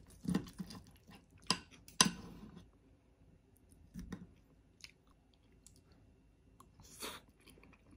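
A knife and fork scrape and clink against a plastic plate.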